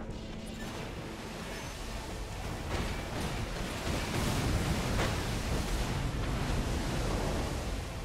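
Jet thrusters roar steadily and grow louder.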